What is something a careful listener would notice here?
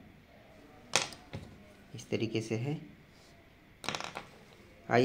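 Plastic pen parts tap and click on a wooden table.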